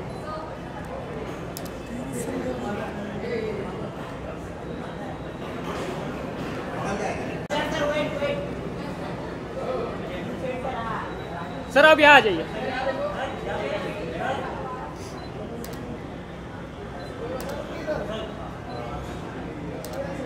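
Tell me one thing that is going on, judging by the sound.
Several men call out and chatter nearby in a lively crowd.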